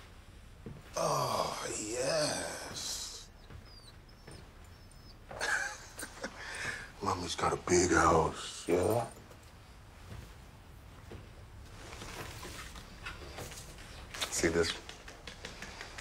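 A man talks angrily as he walks away.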